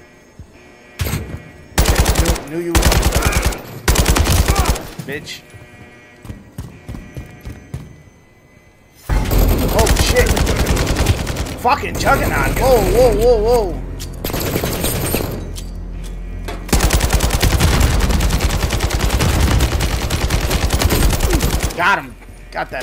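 Rapid bursts of gunfire echo loudly in a tunnel.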